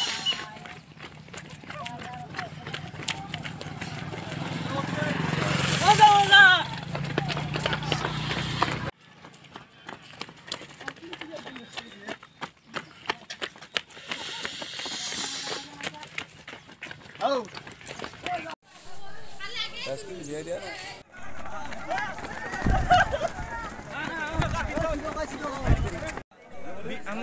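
Many runners' footsteps patter on a paved road.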